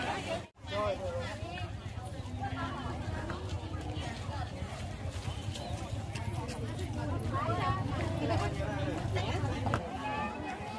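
Men and women chatter nearby, outdoors.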